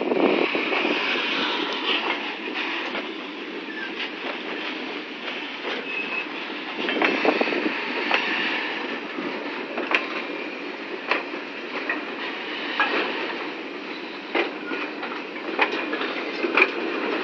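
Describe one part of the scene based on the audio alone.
A freight train rumbles past close by on the rails.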